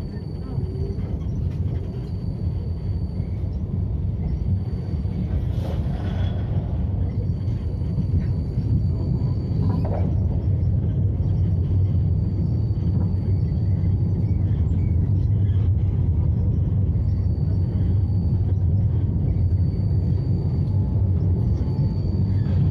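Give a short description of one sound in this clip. A vehicle rumbles low and steady while driving along a street.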